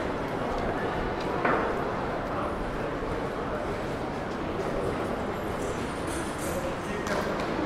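Suitcase wheels roll and rattle over a stone floor.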